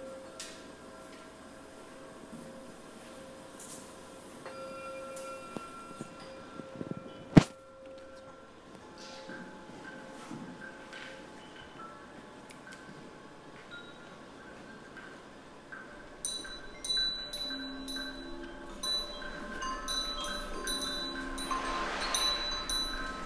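Small percussion instruments are tapped and ring softly.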